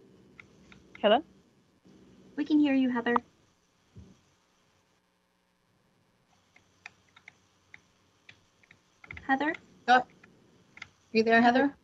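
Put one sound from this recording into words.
A woman speaks in short phrases through an online call.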